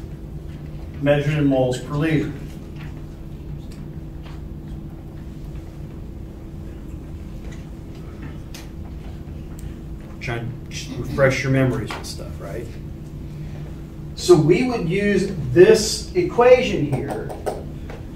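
A man speaks in a calm lecturing voice, with pauses, in a room with slight echo.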